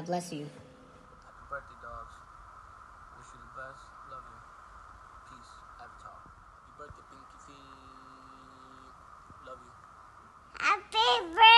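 A man speaks quietly close to a phone.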